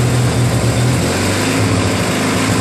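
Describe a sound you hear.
A small engine shifts to a lower speed with a changed tone.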